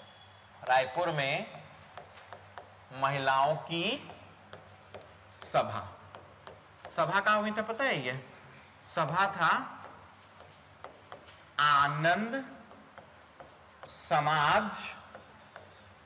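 A man speaks slowly and clearly through a close microphone, in short phrases with pauses.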